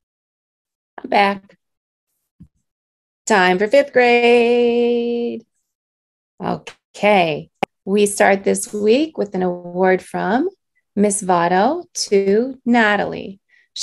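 A woman speaks warmly and cheerfully through an online call.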